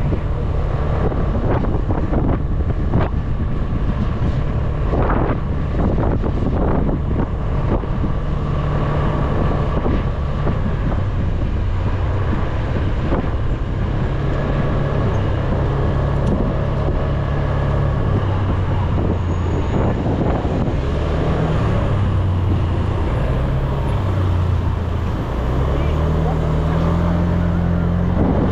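A scooter engine hums steadily up close, rising and falling in pitch.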